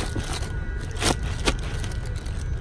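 A hand presses into a soft pillow with a rustle.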